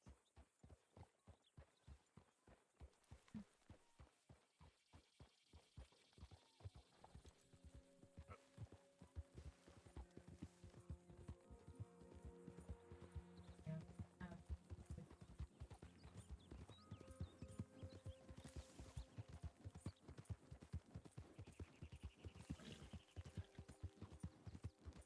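Horse hooves pound steadily at a gallop.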